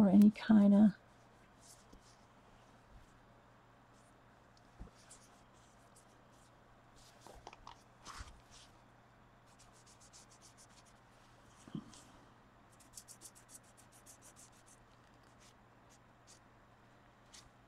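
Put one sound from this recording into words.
A paper towel rubs and dabs softly against a smooth hard surface.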